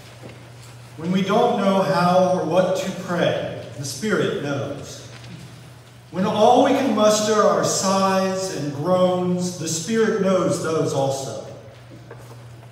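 A man speaks calmly into a microphone, heard through loudspeakers in a large echoing hall.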